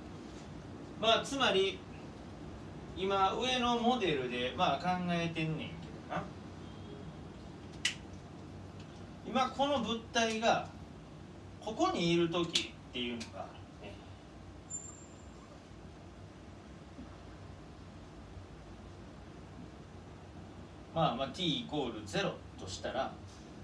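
A man speaks calmly, pausing often.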